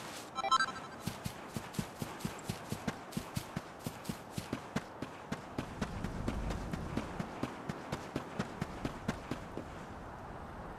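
Footsteps patter quickly on grass and stone.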